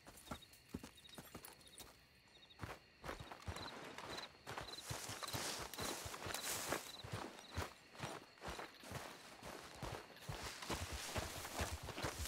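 Footsteps crunch on the ground outdoors.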